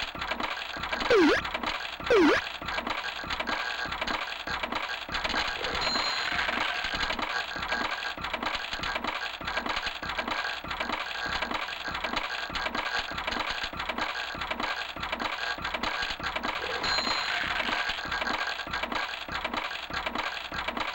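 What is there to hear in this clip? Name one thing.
Pachinko balls clatter rapidly and steadily through a machine.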